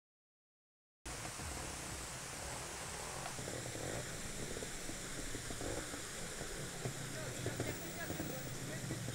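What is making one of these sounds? A motorcycle engine revs and sputters.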